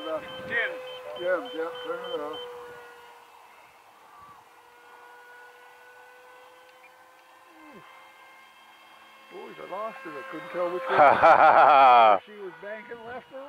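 A small aircraft engine drones steadily overhead.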